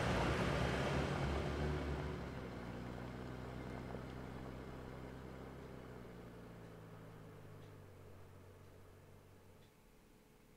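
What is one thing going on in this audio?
A car engine drives away and slowly fades into the distance.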